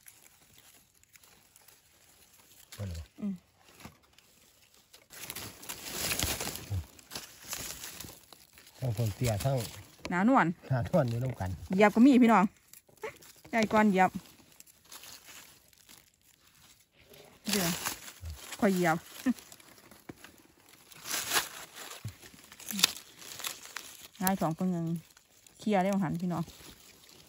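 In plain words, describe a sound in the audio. A knife cuts through soft mushroom stems.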